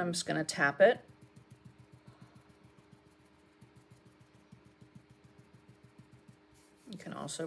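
A paint marker dabs and scratches softly on paper.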